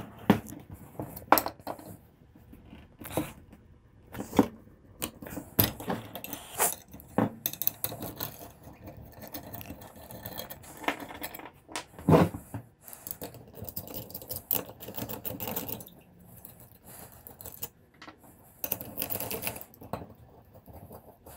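A ratchet wrench clicks as it turns.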